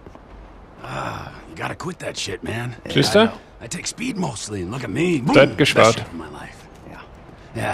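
Another man speaks in reply, close by.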